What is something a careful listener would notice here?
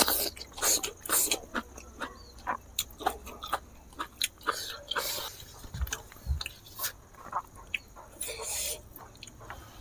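Fingers squish and pick through soft food.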